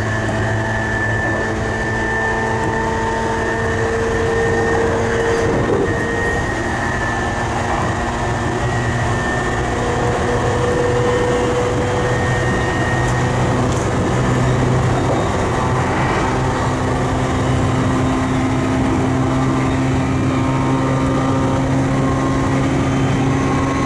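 Wheels of an electric commuter train rumble over the rails at high speed.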